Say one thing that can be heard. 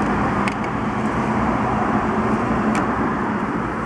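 A plastic bulb holder clicks as it is twisted loose.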